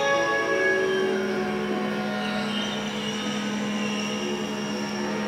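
Electronic synthesizer tones drone and slowly shift, echoing in a large hall.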